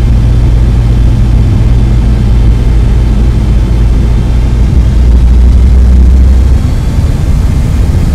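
Jet engines roar with a deep, steady rumble as a plane rolls down a runway.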